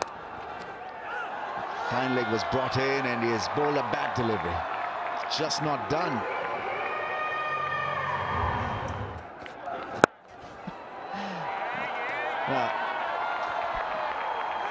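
A large crowd cheers loudly in a stadium.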